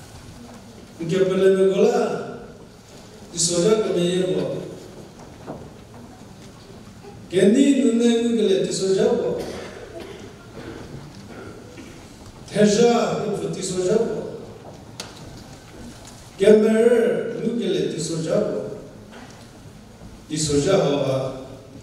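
A middle-aged man speaks calmly into a microphone in short phrases, heard through a loudspeaker in an echoing hall.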